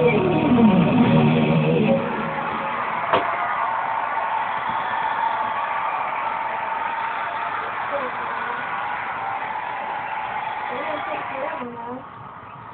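Rock music plays through a television speaker.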